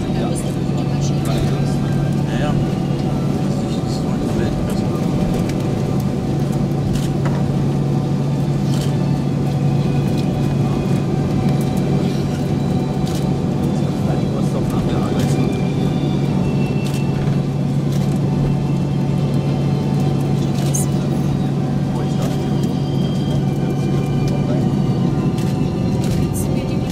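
Aircraft wheels rumble and thump over runway joints.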